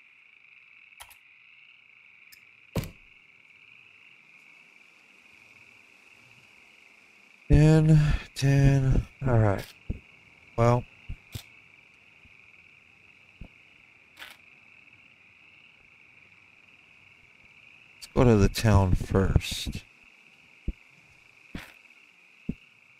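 Short menu clicks sound now and then.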